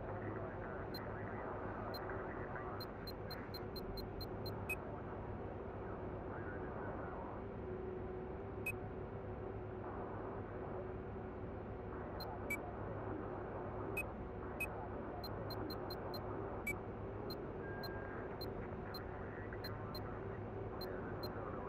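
Short electronic clicks tick in quick runs as menu items change.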